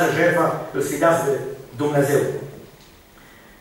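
An elderly man speaks slowly and earnestly into a microphone.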